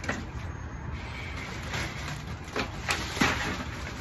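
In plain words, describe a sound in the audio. Ice cubes rattle and clatter into a plastic bin.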